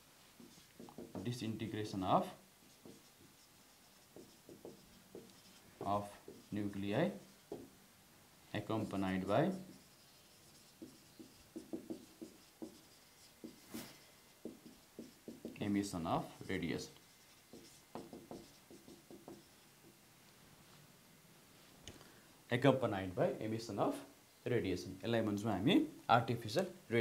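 A man speaks calmly and clearly, as if explaining, close by.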